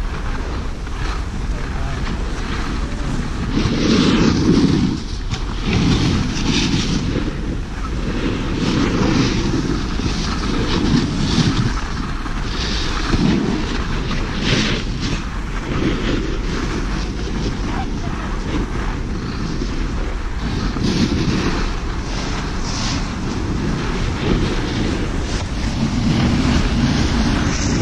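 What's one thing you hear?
Wind rushes against the microphone.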